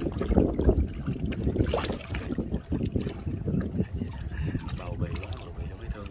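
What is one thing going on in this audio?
Water and fish pour from a plastic basin into a river.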